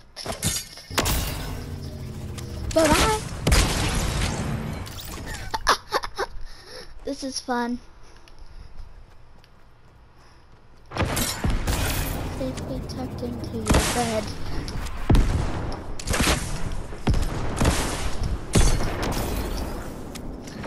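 Rockets launch and explode with loud booming blasts.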